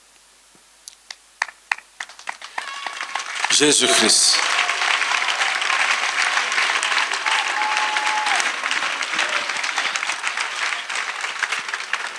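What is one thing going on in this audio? A crowd claps along steadily.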